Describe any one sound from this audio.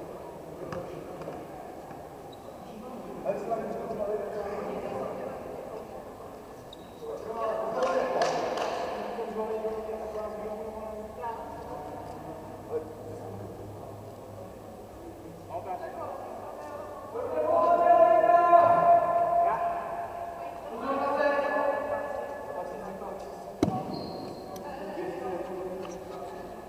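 Young men and women call out and shout across a large echoing hall.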